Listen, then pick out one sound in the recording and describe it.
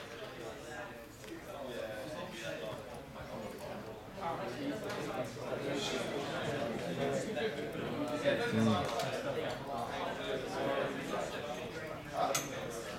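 Many people murmur in a large room.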